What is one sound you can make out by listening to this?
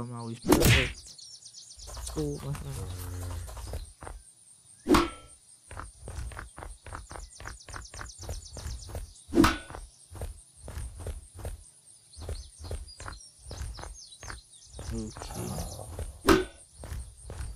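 A blunt weapon strikes a body with a loud thump.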